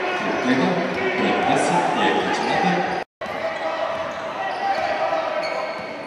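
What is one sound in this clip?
A crowd chatters and cheers in an echoing hall.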